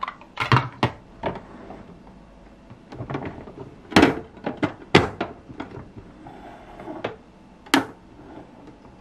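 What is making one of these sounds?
Plastic toy parts click and clack as they are opened and closed.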